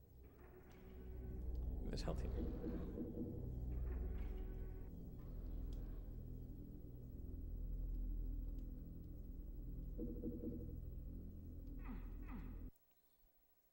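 A low droning game soundtrack plays.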